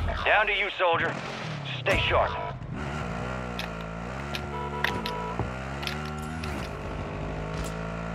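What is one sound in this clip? A quad bike engine revs as it drives along.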